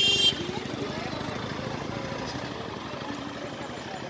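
A motor scooter buzzes past.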